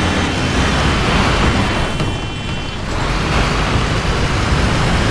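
A bus engine rumbles low as it drives.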